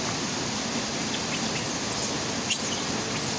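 A small monkey squeaks in high, short cries.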